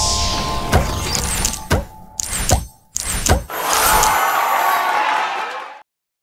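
Upbeat game music plays.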